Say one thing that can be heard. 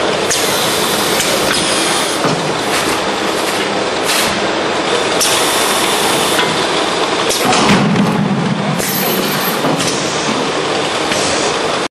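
A conveyor belt runs with a steady mechanical whir.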